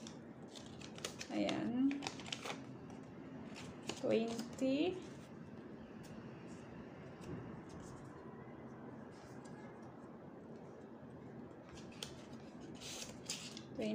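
Paper rustles and crinkles as envelopes are handled.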